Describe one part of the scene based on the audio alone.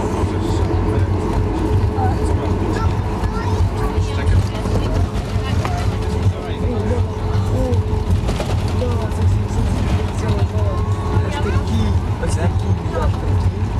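Jet engines drone steadily from inside a taxiing airliner cabin.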